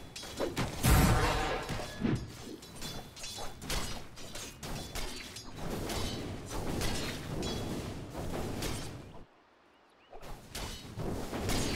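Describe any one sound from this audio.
Game spells and weapons crackle and clash in a busy battle.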